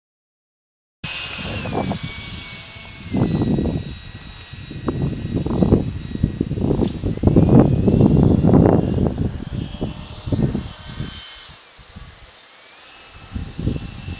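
A radio-controlled model jet whines as it flies overhead.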